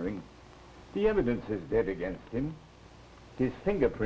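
A young woman answers softly.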